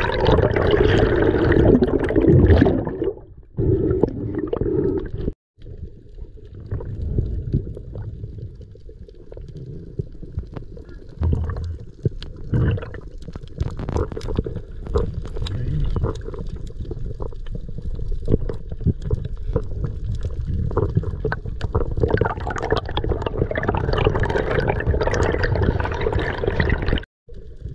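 Air bubbles gurgle and burble close by underwater.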